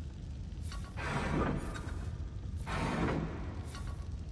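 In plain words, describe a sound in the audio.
Heavy stone pieces grind and whoosh as they turn.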